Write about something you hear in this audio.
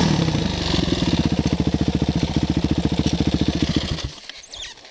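A dirt bike engine idles with a rapid putter and then cuts out.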